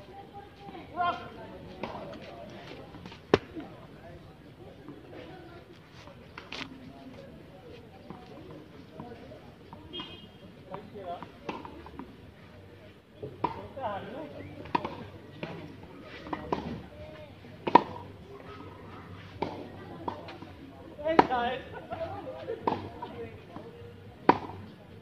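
A tennis ball bounces off a hard court with sharp thuds.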